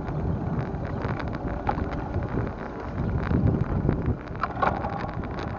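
Wind rumbles loudly past a moving bicycle.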